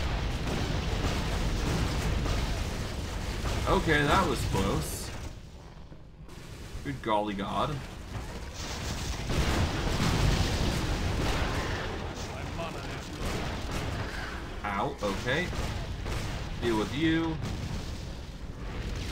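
Spells and weapons crackle and thud in a steady stream of battle noise.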